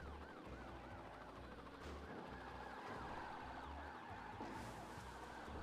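A car engine roars as a car speeds along.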